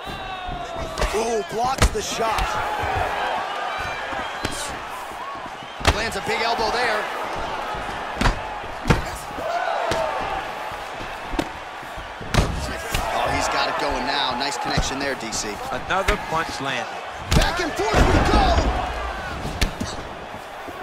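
Punches and kicks thud sharply against bodies.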